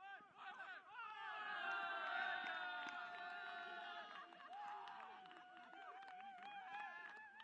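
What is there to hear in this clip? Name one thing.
Young men cheer and shout loudly outdoors.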